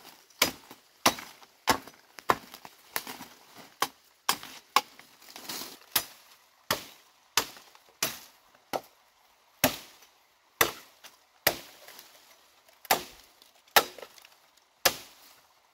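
A machete chops into bamboo with sharp, repeated blows.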